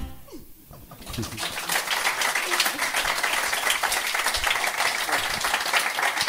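A woman laughs heartily close by.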